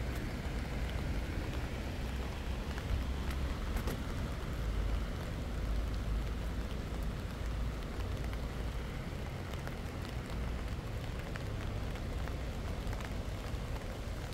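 Wind rumbles steadily outdoors, buffeting the microphone.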